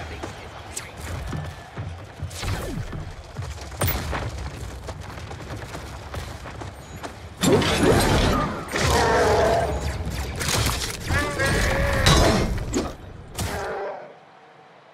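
Game weapons fire and blast in rapid bursts.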